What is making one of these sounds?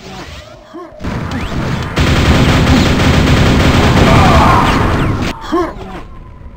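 A heavy gun fires rapidly with loud blasts.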